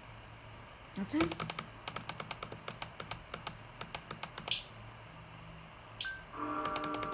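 A clock ticks steadily through a small laptop speaker.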